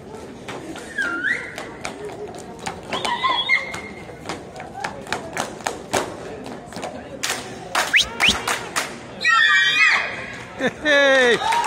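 Dancers' shoes stamp and tap rhythmically on a wooden stage.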